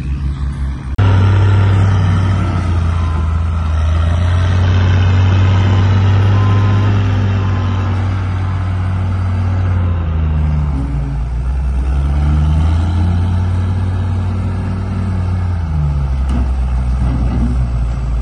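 A wheel loader's engine roars loudly, revving up and down as it works.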